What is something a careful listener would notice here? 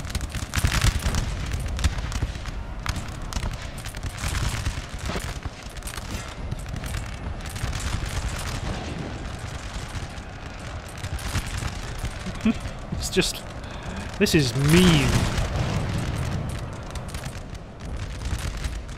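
Musket volleys crackle and pop in rapid bursts across a battlefield.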